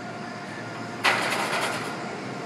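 A loaded barbell clanks against a metal rack.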